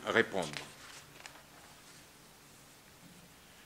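Paper rustles as a sheet is turned.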